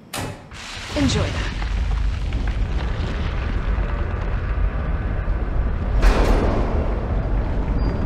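An explosion bursts with a deep, lasting rumble.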